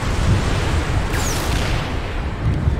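A fiery blast bursts with a loud crack.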